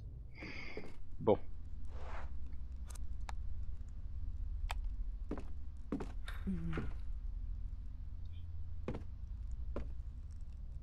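A wooden drawer knocks and rattles as it is handled.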